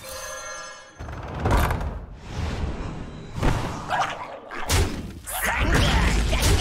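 Digital game sound effects whoosh and crash.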